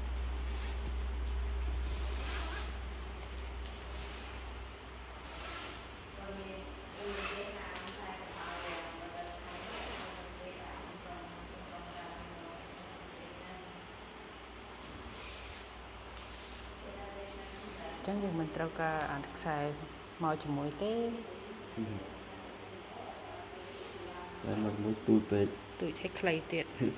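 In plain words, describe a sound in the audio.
Stiff fabric rustles and swishes as it is handled.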